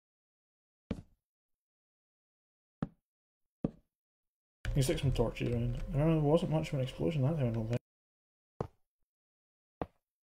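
Blocks are set down with short, soft thuds.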